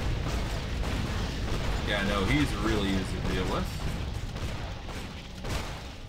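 Spells and weapons crackle and clash in a fight.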